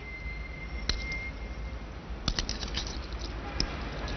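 Metal handcuffs clink.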